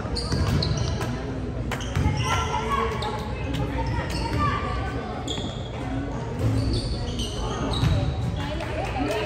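Girls shout and call out, echoing in a large hall.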